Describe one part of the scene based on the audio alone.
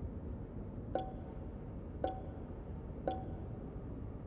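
Short soft clicks tick as a menu choice moves.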